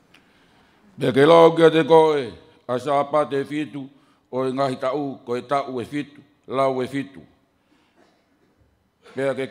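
A man reads out slowly into a microphone.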